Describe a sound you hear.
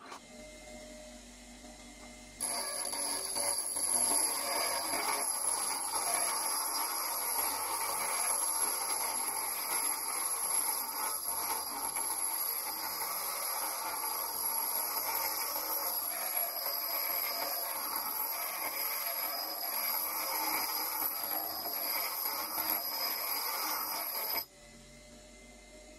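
An electric grinder motor hums steadily.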